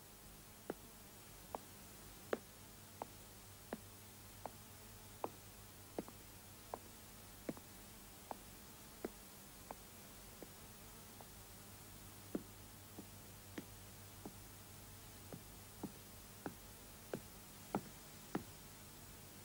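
Footsteps echo slowly and steadily on hard stairs and floorboards.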